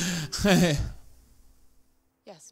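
A man speaks calmly and closely.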